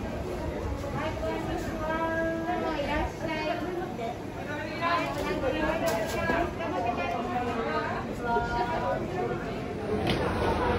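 Men and women talk nearby among a bustling crowd.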